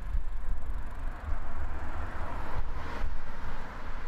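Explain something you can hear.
A car drives by on the road.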